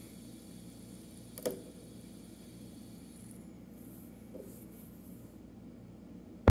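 A fidget spinner whirs softly as it spins.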